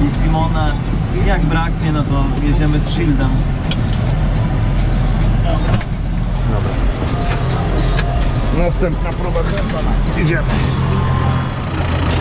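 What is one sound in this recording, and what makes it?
A tractor engine rumbles steadily.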